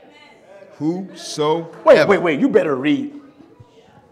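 A middle-aged man preaches with emotion into a microphone in an echoing hall.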